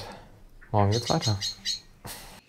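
A man speaks briefly and casually, close by.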